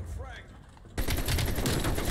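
A rocket explodes with a heavy boom.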